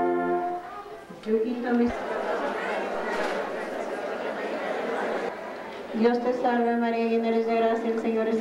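A congregation sings a slow hymn in an echoing hall.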